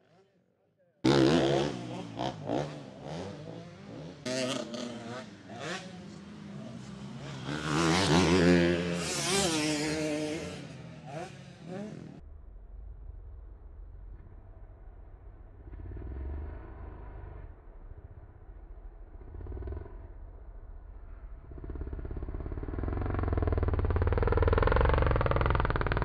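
Dirt bike engines rev and whine, rising and falling in pitch.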